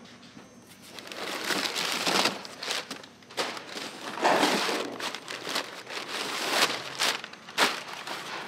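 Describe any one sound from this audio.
Cardboard and paper rustle and crinkle.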